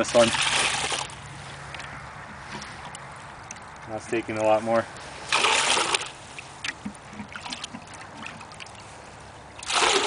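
Water splashes and gurgles as a plastic bucket is dipped into a water hole.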